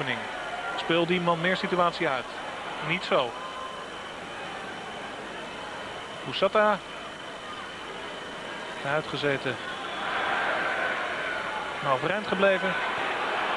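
A large stadium crowd murmurs and cheers in the open air.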